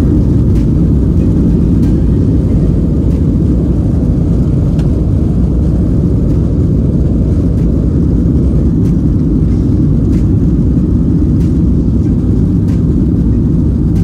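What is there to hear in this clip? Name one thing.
Jet engines roar loudly inside an airliner cabin as it speeds along a runway.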